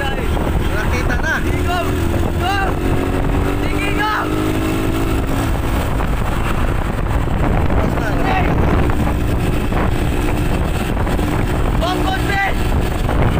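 A motorbike engine hums steadily close by.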